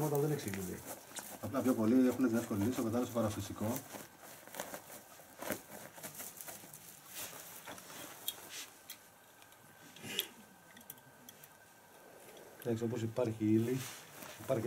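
A man speaks quietly and calmly close by.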